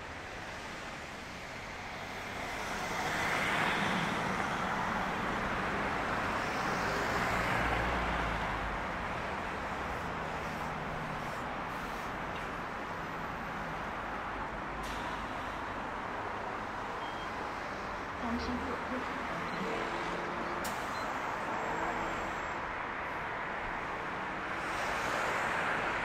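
Cars pass by on a nearby road, with a steady rush of traffic.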